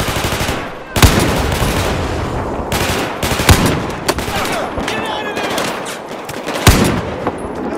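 Sniper rifle shots crack loudly, one at a time.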